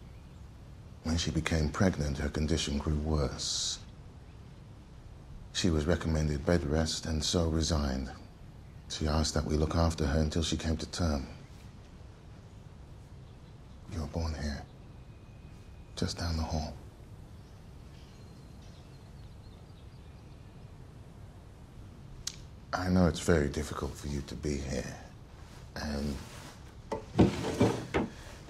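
A man speaks calmly and softly, close by.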